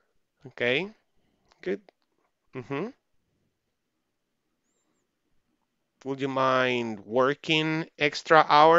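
A man speaks slowly and clearly over an online call, pausing between phrases.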